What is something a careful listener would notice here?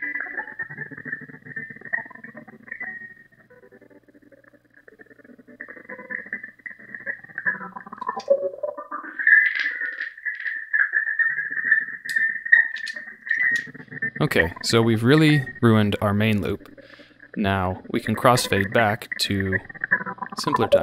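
Looped music plays, building up in layers.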